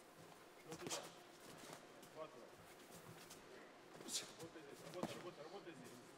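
Punches thud against a boxer's body.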